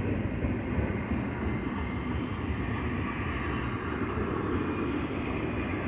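A long freight train rumbles and clatters steadily past on the rails nearby.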